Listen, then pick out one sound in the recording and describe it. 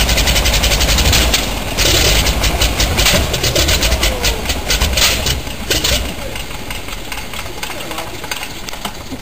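A radial engine roars loudly up close, popping and sputtering as its propeller spins.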